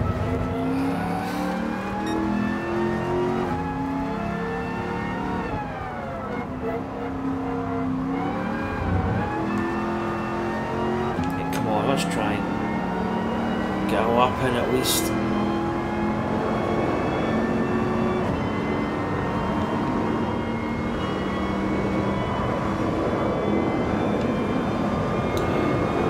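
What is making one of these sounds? A racing car engine roars, rising in pitch and dropping back with each gear change.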